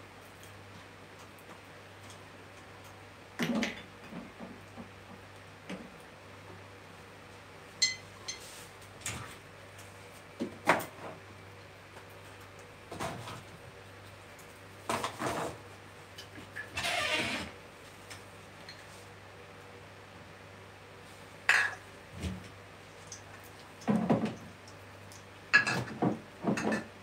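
A corkscrew squeaks and creaks as it twists into a cork.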